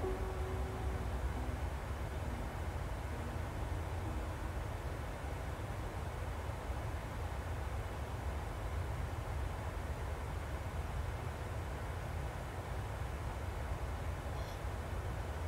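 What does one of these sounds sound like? A jet engine drones with a steady low roar.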